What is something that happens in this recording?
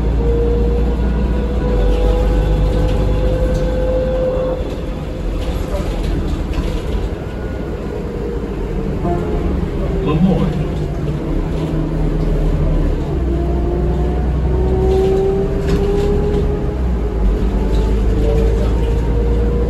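The bus rattles and creaks over the road.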